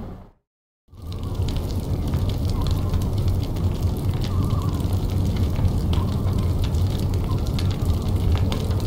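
A fire crackles softly in a fireplace.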